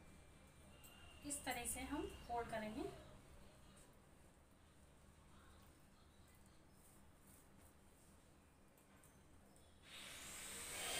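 Hands roll paste-coated taro leaves with a soft, wet rustle.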